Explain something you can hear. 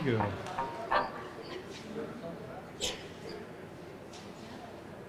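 Elderly men and women chat nearby in a roomy hall.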